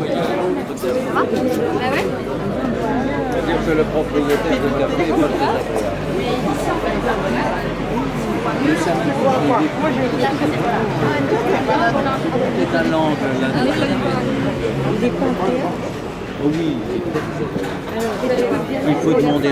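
A crowd of men and women chatters all around, close by, outdoors.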